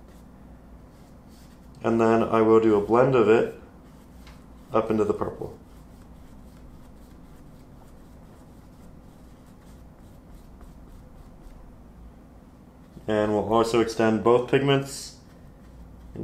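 A paintbrush strokes softly across canvas.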